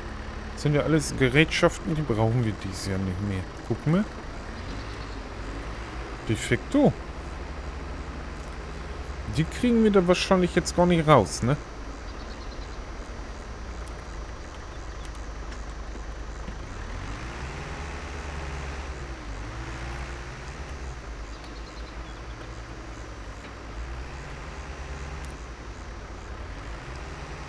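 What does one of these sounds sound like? A tractor engine idles with a low, steady rumble.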